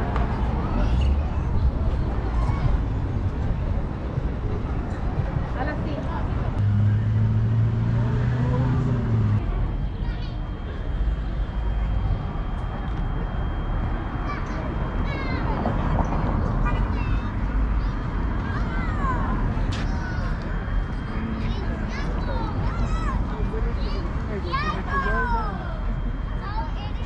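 City traffic rumbles steadily in the distance outdoors.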